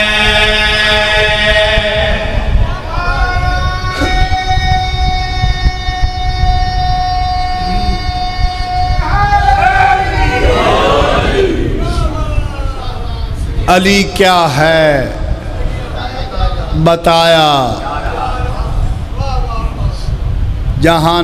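A man chants a slow lament through a loudspeaker in an echoing hall.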